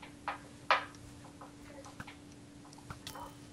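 A bow twangs as an arrow is let loose.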